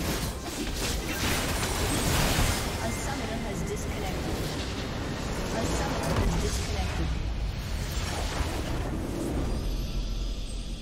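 Game battle effects clash and explode loudly.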